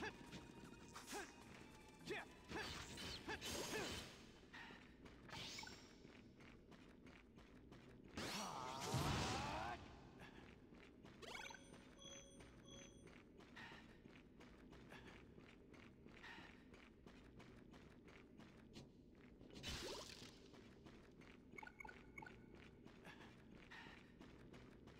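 Footsteps run across the ground.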